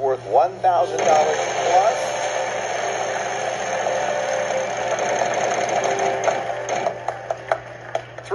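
A prize wheel spins, ticking rapidly and then slowing to a stop.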